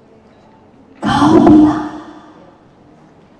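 A woman declaims loudly through a microphone, her voice echoing in a large hall.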